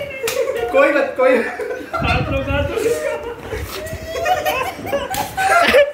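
Young men laugh and talk loudly close by.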